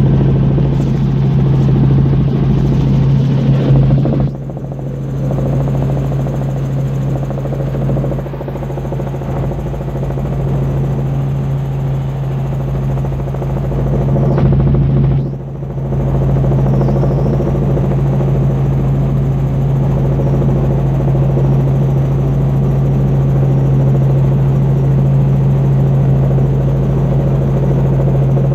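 A helicopter's engine and rotor drone loudly and steadily from inside the cabin.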